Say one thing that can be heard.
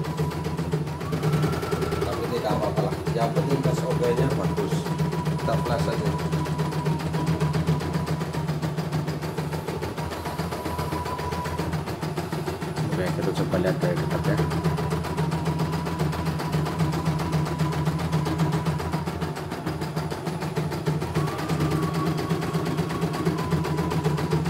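An embroidery machine needle stitches with a fast, even clatter.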